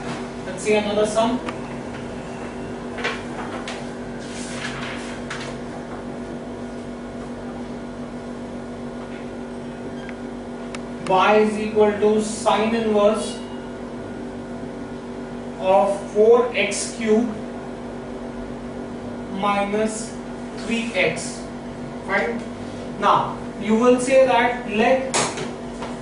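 A man speaks calmly nearby, explaining at a steady pace.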